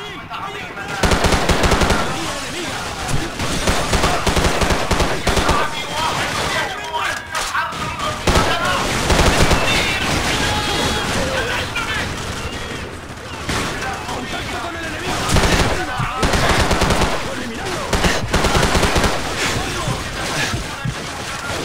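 Rifle shots fire in rapid, loud bursts.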